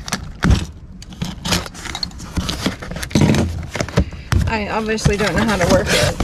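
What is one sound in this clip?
Cardboard flaps rustle and scrape as a box is opened.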